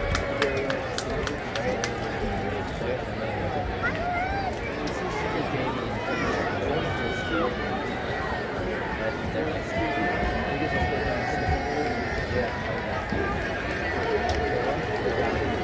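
A crowd of spectators chatters nearby outdoors.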